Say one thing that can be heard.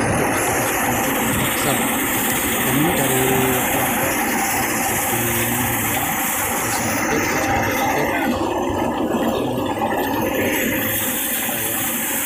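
Grain pours and rustles out of a threshing machine.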